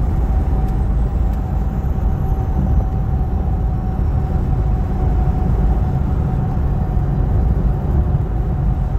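Tyres rumble steadily on a highway.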